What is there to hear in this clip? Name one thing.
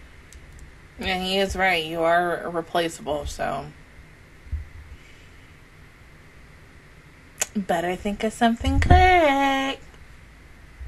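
A young woman sings expressively, close to a microphone.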